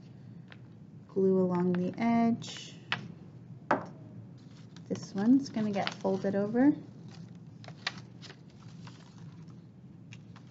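Stiff paper flaps rustle and tap as they are folded open.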